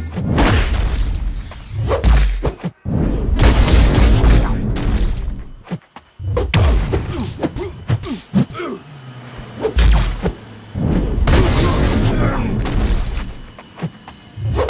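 Electronic energy effects whoosh and crackle.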